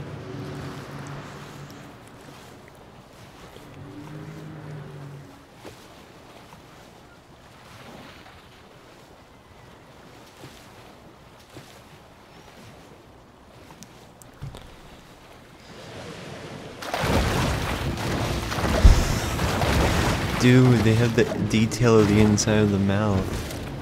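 Water swishes steadily as a shark swims through it.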